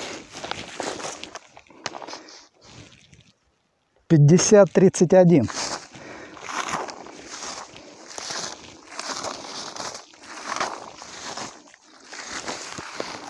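Low bushes rustle and crackle close by.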